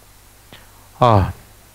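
A middle-aged man speaks in a lecturing tone.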